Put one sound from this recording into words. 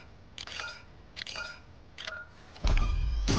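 Short electronic chimes ring several times in quick succession.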